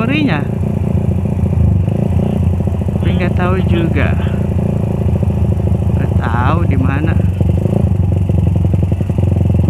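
A motorcycle engine hums steadily up close as the bike rolls along.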